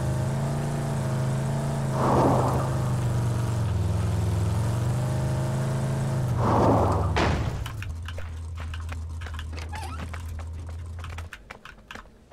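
A vehicle engine drones steadily, then cuts out.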